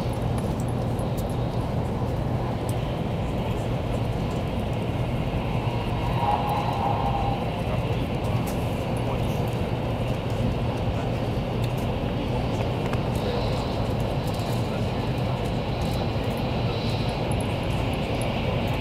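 A fast train hums and rumbles steadily, heard from inside a carriage.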